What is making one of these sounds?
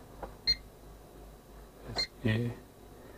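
An alarm keypad beeps as its buttons are pressed.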